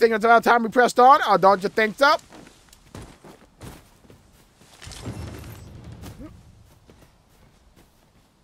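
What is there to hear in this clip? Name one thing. Footsteps rustle through grass at a run.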